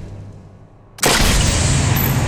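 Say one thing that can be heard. A rifle shot cracks loudly.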